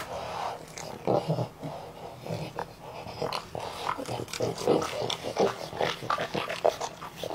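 A dog chews and smacks its lips noisily while eating.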